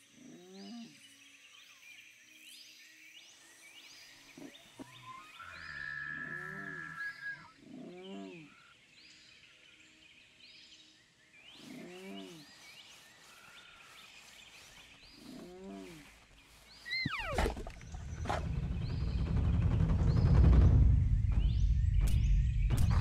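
Paws pad softly through grass.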